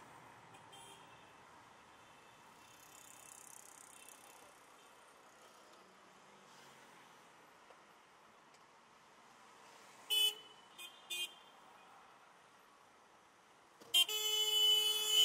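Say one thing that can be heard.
A car engine hums steadily as traffic creeps along.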